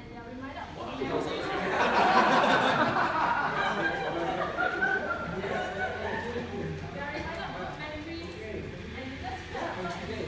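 A group of people cheer and clap in a room.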